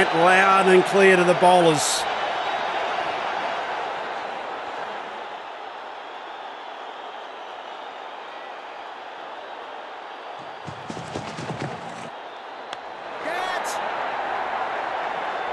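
A large crowd murmurs and cheers steadily.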